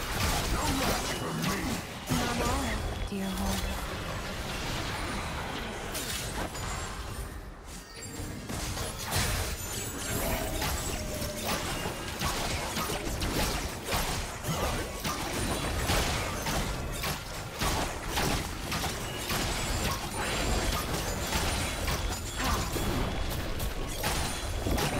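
Spell effects crackle, whoosh and burst in a fast video game fight.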